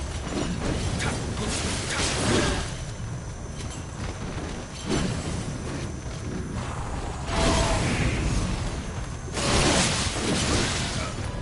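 A sword slashes and strikes in bursts of combat.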